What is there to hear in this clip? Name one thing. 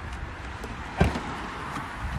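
A car's tailgate unlatches with a click and swings open.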